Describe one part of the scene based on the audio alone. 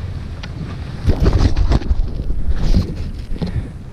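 A glove knocks against a microphone.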